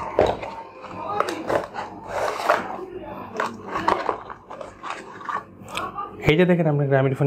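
Cardboard rustles and scrapes as a box is opened.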